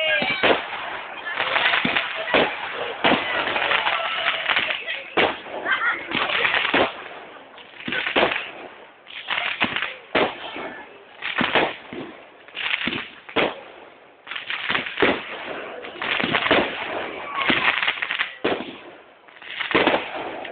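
Fireworks crackle and sizzle after the bursts.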